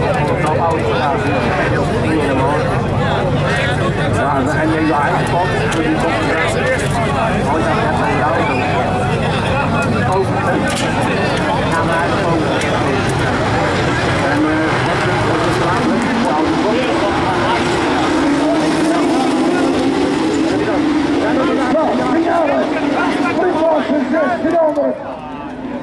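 A crowd of spectators chatters loudly close by.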